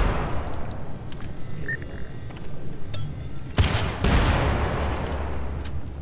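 A gun fires a few loud shots that echo briefly.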